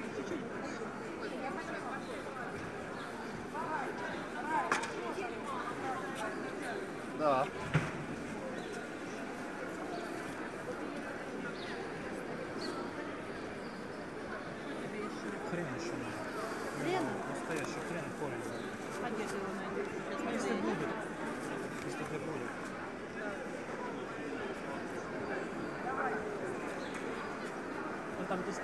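A crowd of shoppers chatters in a large echoing hall.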